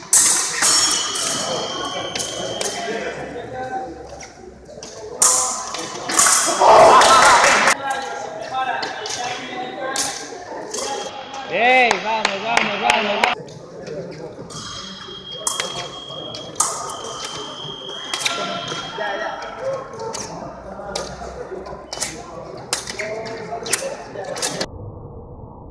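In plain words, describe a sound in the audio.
Fencers' feet stamp and squeak on the floor in a large echoing hall.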